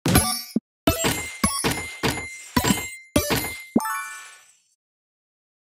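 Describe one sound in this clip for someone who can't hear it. Bright game pops and chimes ring out quickly as a ball bounces off fruit.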